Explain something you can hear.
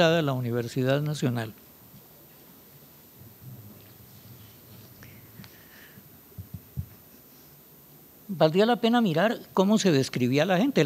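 An elderly man speaks calmly through a microphone, pausing between phrases.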